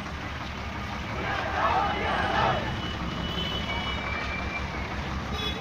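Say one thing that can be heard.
A crowd of men chants and shouts together outdoors.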